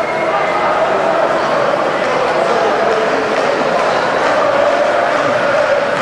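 A man speaks with animation into a microphone, amplified over loudspeakers.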